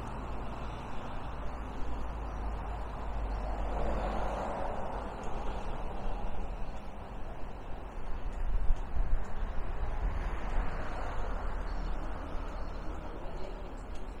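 Wind rushes and buffets steadily outdoors.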